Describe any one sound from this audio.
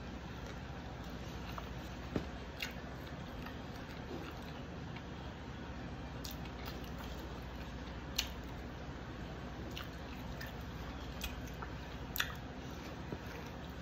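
A woman chews food with soft smacking sounds.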